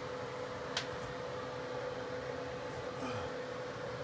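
Fabric rustles as a shirt is pulled off.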